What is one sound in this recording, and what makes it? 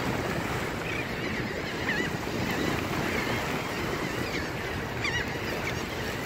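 Seabirds call overhead.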